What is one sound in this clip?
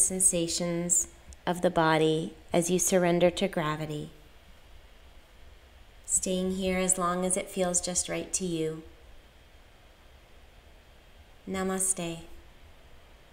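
A woman speaks calmly and softly, close by, with pauses.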